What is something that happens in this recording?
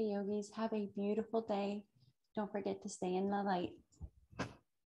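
A woman speaks calmly and warmly, close by.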